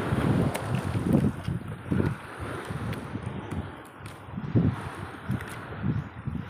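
Wind gusts across open water with low buffeting bursts.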